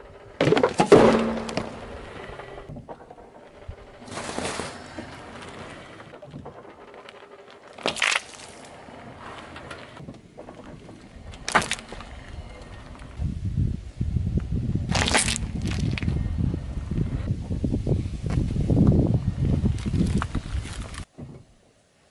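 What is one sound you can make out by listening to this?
Car tyres roll slowly over rough asphalt.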